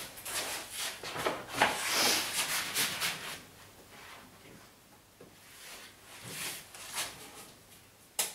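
Wallpaper rustles and crinkles as it is handled on a table.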